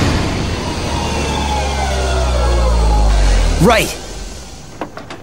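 A heavy vehicle's engine rumbles loudly and winds down.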